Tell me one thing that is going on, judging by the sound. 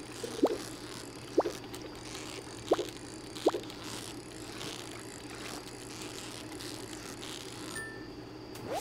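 A fishing reel whirs in short quick bursts.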